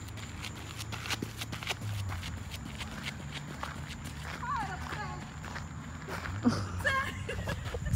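Running footsteps crunch on gravel.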